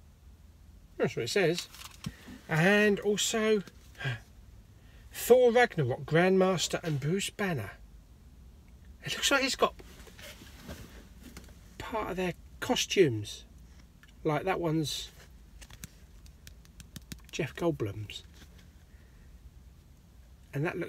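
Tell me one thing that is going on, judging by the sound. A middle-aged man talks with animation close by, in short bursts with pauses.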